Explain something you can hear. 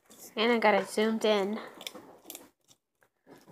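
A lizard chews food with soft, wet clicks.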